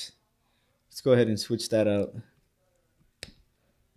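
A small plastic piece clicks as it is set down on a hard surface.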